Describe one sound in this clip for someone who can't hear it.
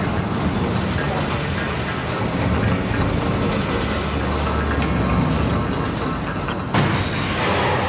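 A heavy machine rumbles low and steadily, then fades.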